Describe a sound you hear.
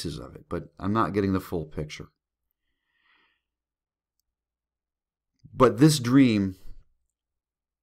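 A man talks with animation close to a microphone, in short bursts with pauses.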